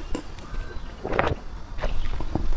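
A young woman gulps a drink close to a microphone.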